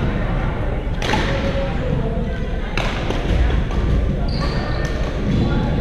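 Shuttlecocks are smacked by rackets now and then in a large echoing hall.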